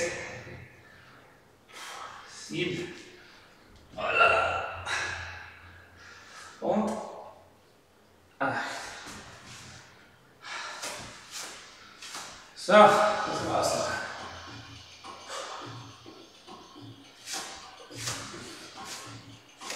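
A man talks calmly as he instructs, in a room with a slight echo.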